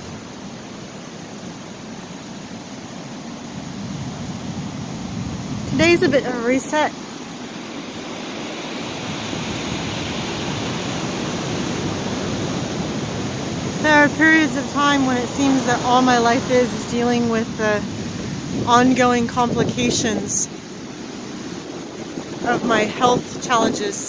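Foamy waves wash up and hiss over wet sand.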